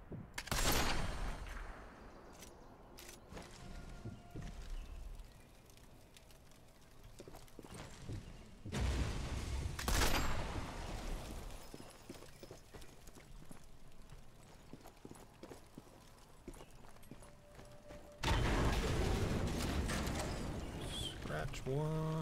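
Footsteps thud on wooden boards and then on soft ground.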